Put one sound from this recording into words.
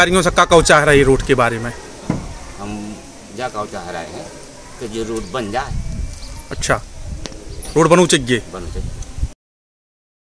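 A middle-aged man speaks calmly and close to a microphone outdoors.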